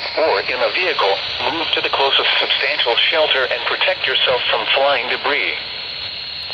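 A man's voice reads out a weather report through a small radio speaker.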